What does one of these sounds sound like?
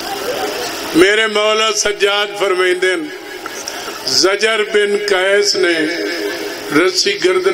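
A man recites with animation into a microphone, heard through a loudspeaker.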